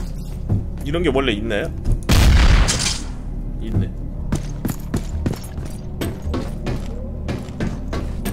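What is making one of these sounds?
Footsteps clatter quickly on a hard floor and metal stairs.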